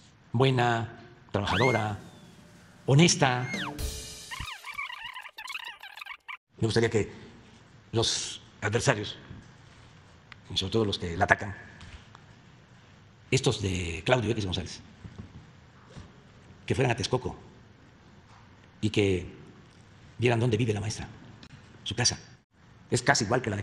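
An elderly man speaks calmly into a microphone in short phrases.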